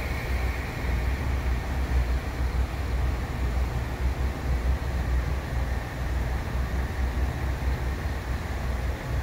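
A train's engine rumbles low as it pulls slowly along the platform.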